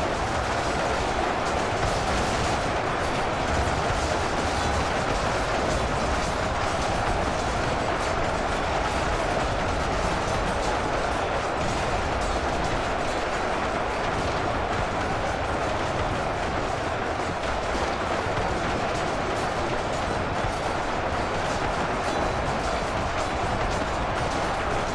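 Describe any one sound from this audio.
A huge battle rages, with weapons clashing and clanging without pause.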